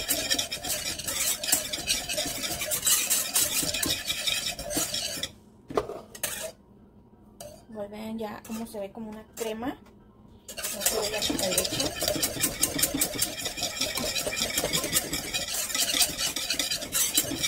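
A wire whisk scrapes and clatters quickly against a metal pot.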